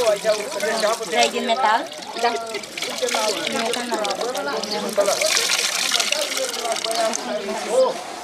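Water splashes and drips as wet cloth is wrung into a tub.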